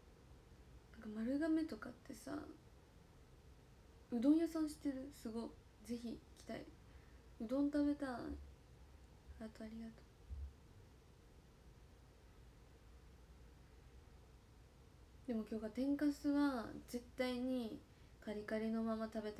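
A young woman speaks calmly and close by, in short bursts with pauses.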